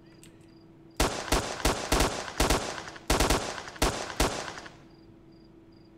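Rifle shots ring out in quick succession with echoing tails.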